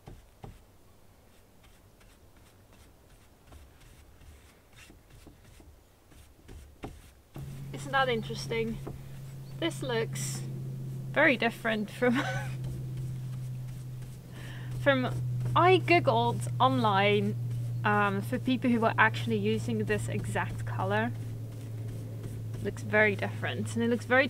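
A paintbrush swishes across wood.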